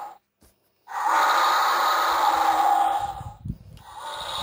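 A child's sound book plays a short recorded clip through a small tinny speaker.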